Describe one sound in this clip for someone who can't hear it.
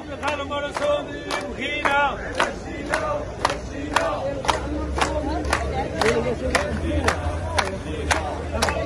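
A crowd of men claps in a steady rhythm outdoors.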